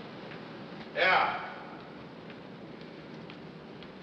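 Footsteps echo along a stone corridor.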